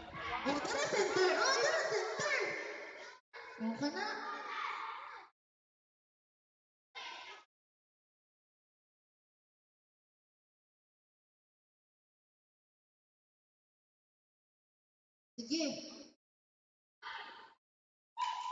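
A group of children chatter and laugh excitedly nearby.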